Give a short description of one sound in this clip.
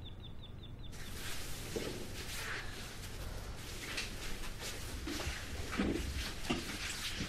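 Footsteps walk away across a floor indoors.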